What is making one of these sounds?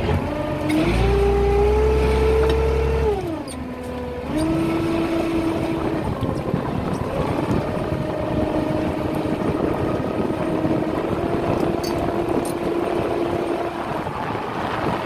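A motorised winch whines steadily, its pitch rising and dropping as it hauls a line.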